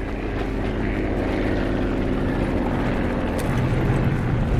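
A quad bike engine idles with a low, steady rumble.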